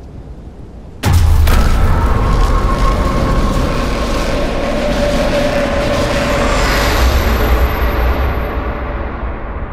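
A truck engine rumbles loudly as the truck drives over rough ground.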